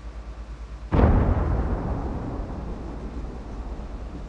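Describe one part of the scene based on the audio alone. A tank cannon fires with a loud boom that rolls away slowly.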